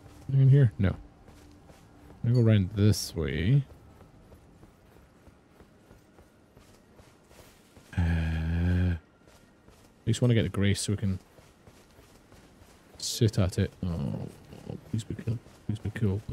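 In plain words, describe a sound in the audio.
A man talks into a close microphone in short bursts with animation.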